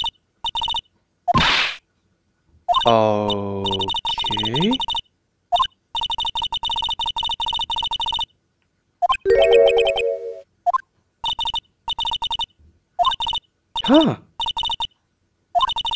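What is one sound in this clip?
Rapid, high electronic blips chatter in quick bursts.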